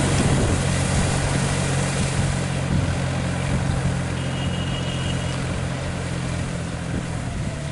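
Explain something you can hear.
A diesel tractor engine chugs under load.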